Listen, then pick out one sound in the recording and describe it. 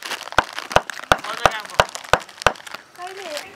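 A mallet taps sharply on a chisel cutting into wood, in quick, even blows.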